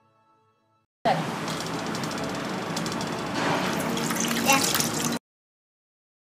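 Liquid pours and splashes into a metal strainer.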